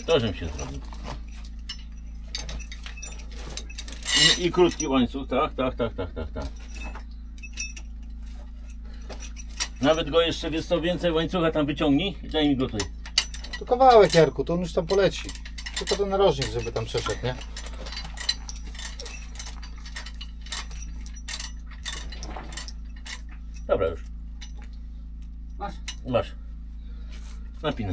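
A metal chain clinks and rattles against stone.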